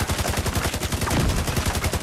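An explosion booms with crackling debris.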